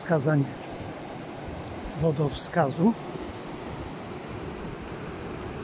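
Fast floodwater rushes and roars steadily outdoors.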